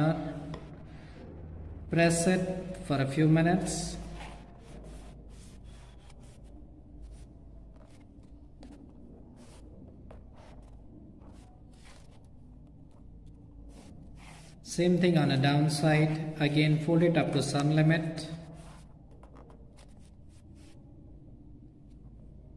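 Paper rustles and creases softly as it is folded.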